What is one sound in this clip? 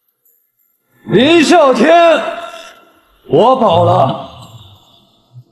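A man speaks with raised voice, close by.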